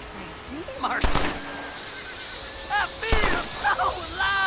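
Gunshots ring out loudly, echoing briefly.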